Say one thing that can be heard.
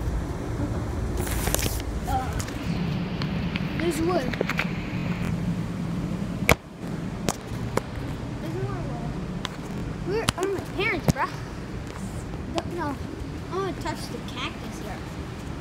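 A boy speaks close by.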